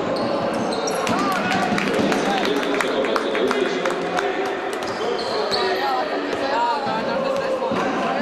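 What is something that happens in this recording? A basketball bounces on a wooden floor in steady dribbles.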